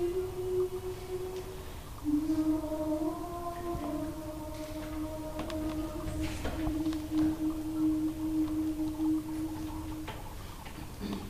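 A choir sings a slow, quiet chord in a reverberant hall.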